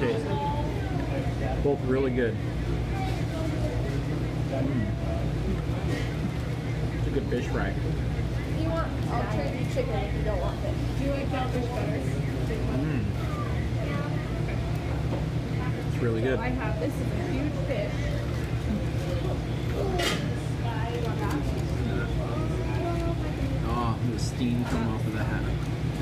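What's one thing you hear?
A man talks close by in a relaxed way.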